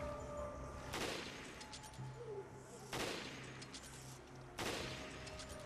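A rifle fires loud single shots that echo.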